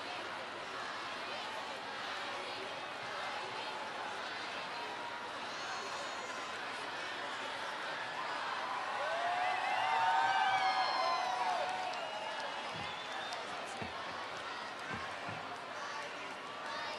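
A large outdoor crowd cheers and roars.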